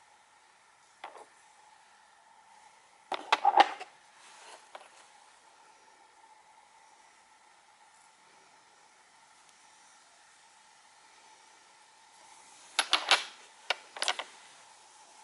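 Polished stones clink and knock against each other.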